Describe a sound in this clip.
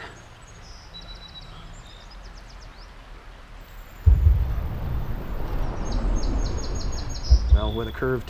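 Shallow water splashes and flows over stones close by.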